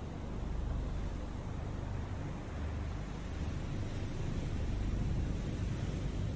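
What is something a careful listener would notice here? A submarine's engine rumbles low and steady.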